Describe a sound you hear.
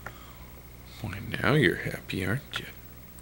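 A man speaks softly close by.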